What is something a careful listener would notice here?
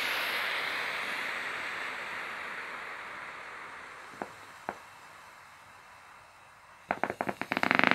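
Air hisses steadily out of a valve and slowly fades.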